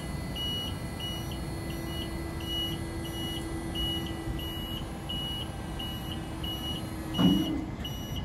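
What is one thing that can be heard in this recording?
A lift's motor hums steadily as its mast moves.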